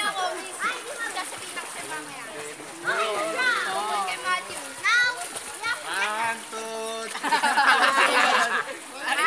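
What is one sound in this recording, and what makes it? Children shout and squeal with excitement outdoors.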